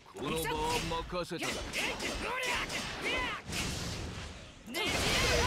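Swords swish and clash in a fast fight.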